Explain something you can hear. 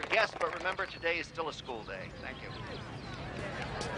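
A man speaks through a loudspeaker to an outdoor crowd.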